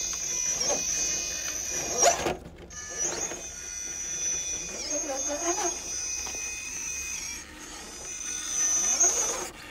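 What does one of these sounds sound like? Plastic tyres scrape and crunch on rock.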